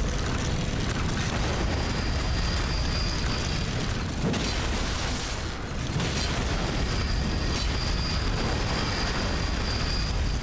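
A sword swings and strikes with heavy, ringing blows.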